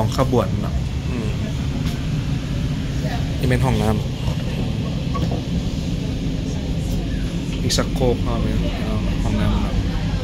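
A train rumbles steadily underneath.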